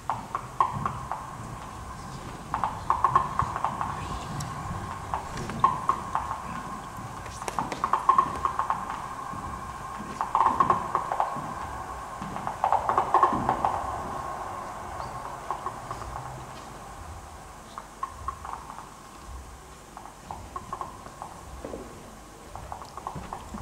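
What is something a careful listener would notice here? A modular synthesizer plays pulsing, bubbling electronic tones.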